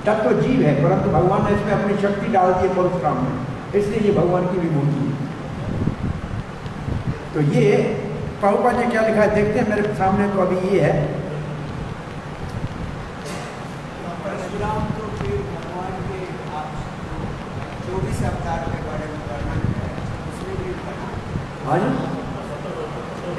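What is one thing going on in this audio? An elderly man speaks with animation close into a microphone.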